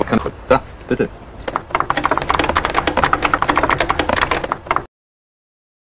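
A typewriter clacks rapidly.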